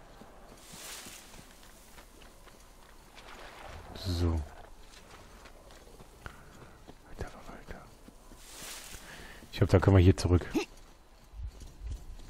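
Footsteps crunch through snow and mud.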